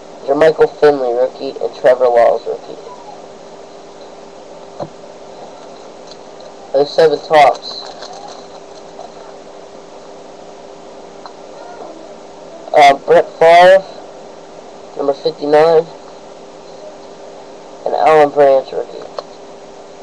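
A teenage boy talks close to the microphone in short bursts.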